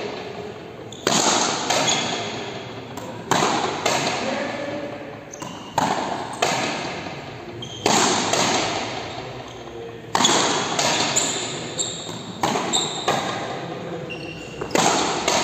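A ball is struck with frontenis rackets and smacks against a wall in a large echoing hall.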